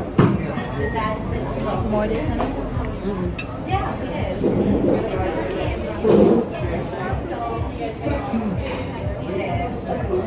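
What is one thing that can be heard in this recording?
Utensils clink against plates.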